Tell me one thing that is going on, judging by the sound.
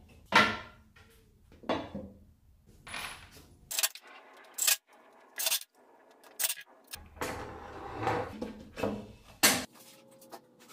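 Wooden panels knock and bump together.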